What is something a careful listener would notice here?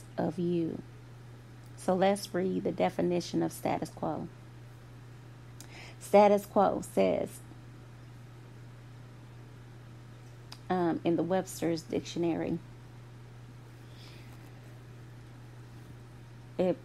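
A woman speaks calmly and close into a microphone, with pauses.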